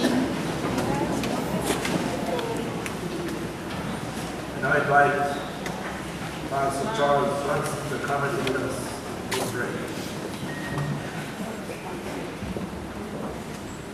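An elderly man speaks calmly through a microphone and loudspeakers.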